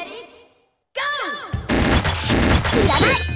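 Upbeat arcade game music plays loudly.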